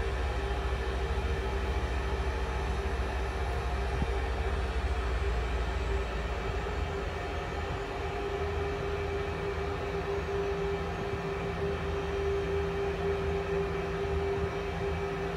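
A jet engine hums steadily while an airliner taxis slowly.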